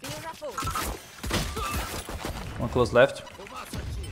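A pistol fires in quick shots.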